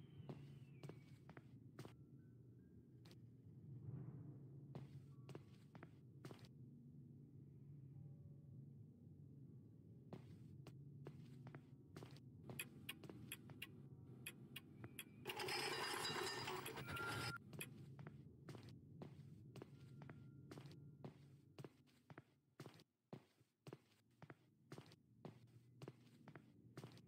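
Footsteps knock steadily on a wooden floor.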